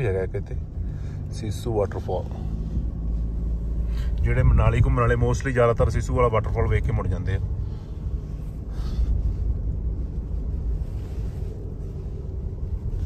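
A car engine hums and tyres rumble steadily on the road from inside the car.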